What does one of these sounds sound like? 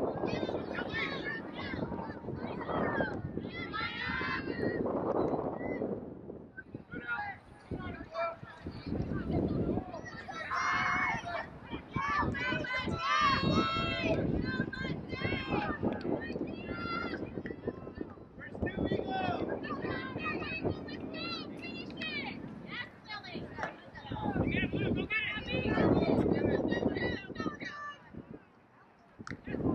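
Young women shout and call to each other outdoors on an open field.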